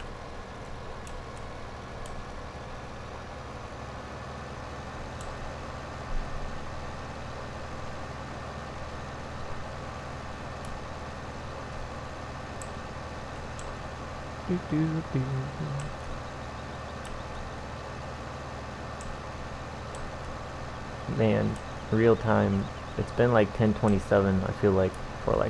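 A diesel tractor engine drones.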